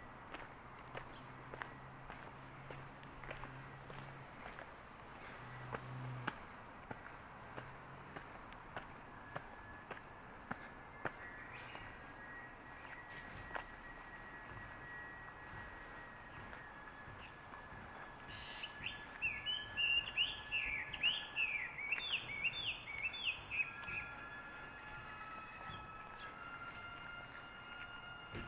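Footsteps tread steadily on a paved path outdoors.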